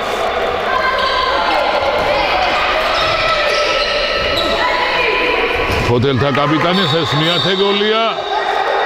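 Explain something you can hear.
Young women players call out to each other in a large echoing hall.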